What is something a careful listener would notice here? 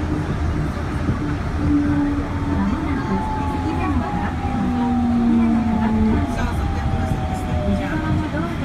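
A train's motor whines, rising and falling in pitch.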